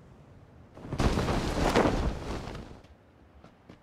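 Wind rushes loudly for a moment.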